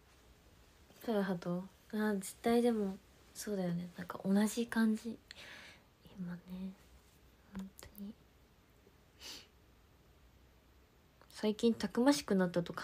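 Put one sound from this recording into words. A young woman talks casually and close to a microphone, with pauses.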